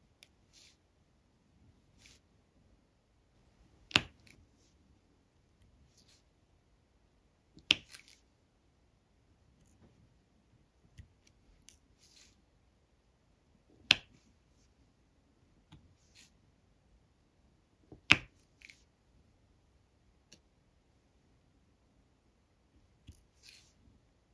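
A pen tool taps and clicks as small plastic beads are pressed onto a sticky canvas.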